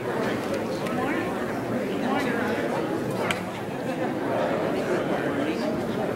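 A man speaks in a low voice, echoing in a large hall.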